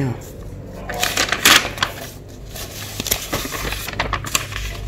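Paper pages rustle as they turn.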